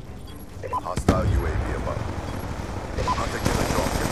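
An explosion booms and crackles with fire.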